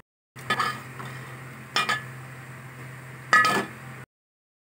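A metal skimmer scrapes and stirs through thick food in a pot.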